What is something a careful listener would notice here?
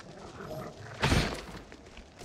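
A sword slashes with a sharp swish.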